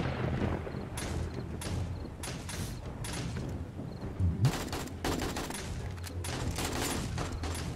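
A rifle fires in quick bursts of shots.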